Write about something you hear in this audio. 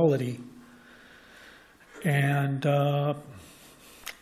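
A middle-aged man speaks haltingly into a microphone.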